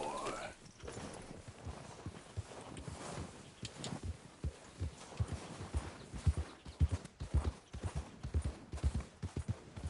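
A horse's hooves thud steadily through snow.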